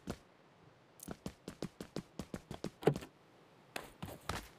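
Footsteps patter on grass outdoors.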